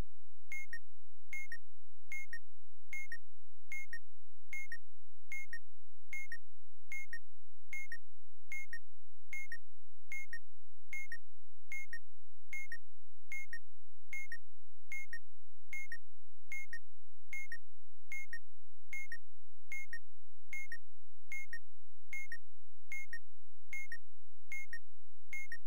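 A timer beeps steadily.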